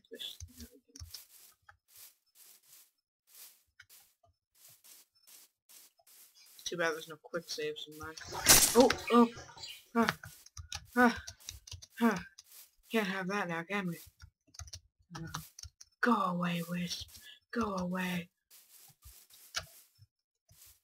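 Footsteps thud softly on grass at a steady walking pace.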